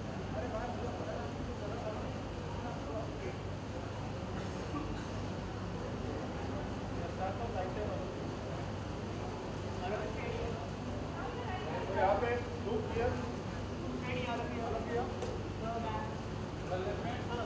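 A crowd of men and women chatter loudly nearby.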